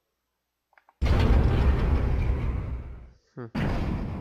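Heavy metal doors slide open with a loud rumble.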